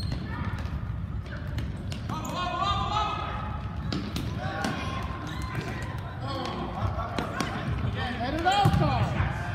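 Children shout and cheer excitedly in a large echoing hall.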